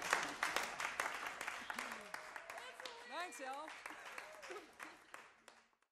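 A woman laughs near a microphone.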